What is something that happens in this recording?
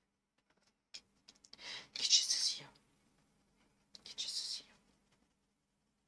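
A coloured pencil scratches across paper in short strokes.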